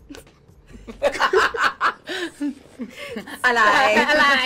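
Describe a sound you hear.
A young woman speaks cheerfully, close to a microphone.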